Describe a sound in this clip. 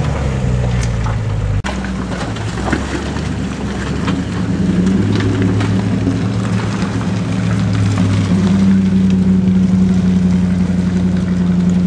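An off-road vehicle's engine rumbles and revs as it climbs through mud.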